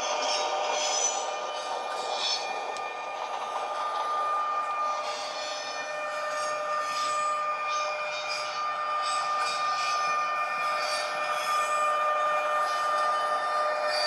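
Model train wheels click over rail joints.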